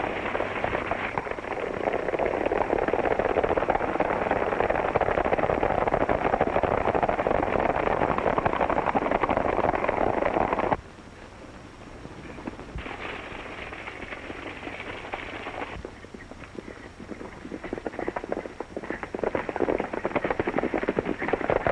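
Horses gallop with rapid hoofbeats on dry ground.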